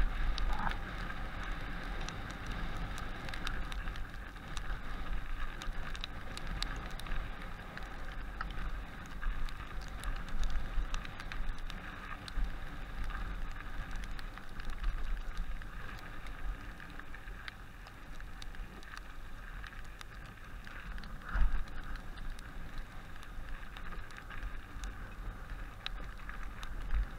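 Wind rumbles steadily against a microphone outdoors.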